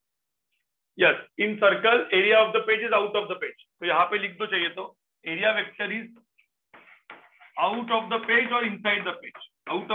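A man explains calmly into a microphone, close by.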